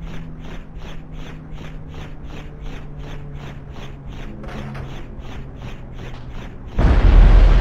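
A police siren wails in fast, even pulses.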